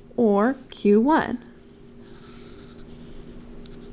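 A felt-tip marker squeaks and scratches softly across paper.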